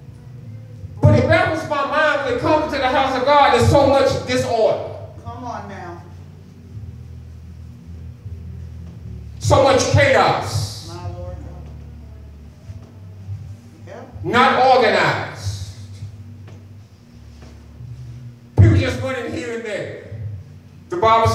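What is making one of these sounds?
A man preaches with animation through a microphone and loudspeakers in a small echoing room.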